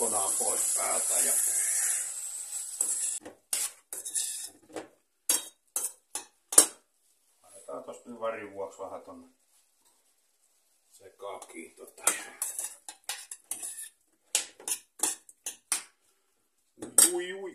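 A spoon clinks and scrapes against a metal pot.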